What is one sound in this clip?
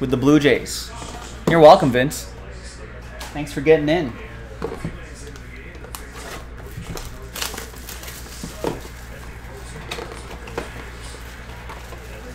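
Cardboard packaging rustles and taps as a box is handled and opened.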